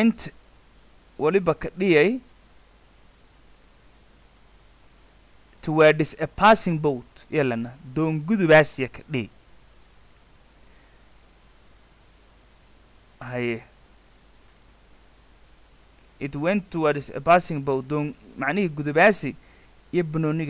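A young man speaks calmly and clearly into a close microphone, with pauses.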